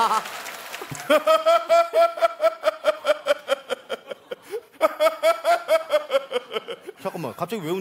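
A man laughs heartily through a microphone.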